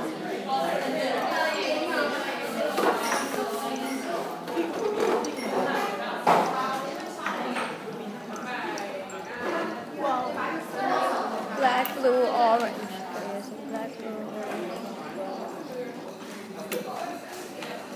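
Water bubbles and fizzes steadily in tall glass cylinders.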